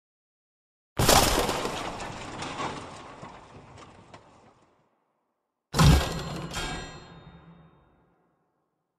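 Heavy blocks crash down and clatter as they scatter.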